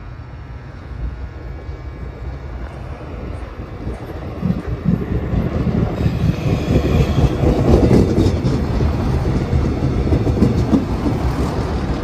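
A train approaches and rumbles past close by.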